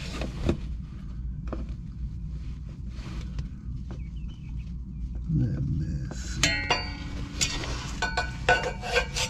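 A small metal tool clicks and taps against a metal pipe.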